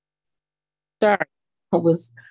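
A woman speaks over an online call.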